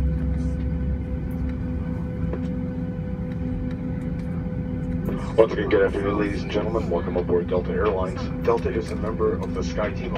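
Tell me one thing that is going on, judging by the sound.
Jet engines hum steadily as an airliner taxis.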